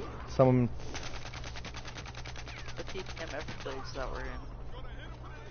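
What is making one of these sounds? A rapid burst of gunfire rattles.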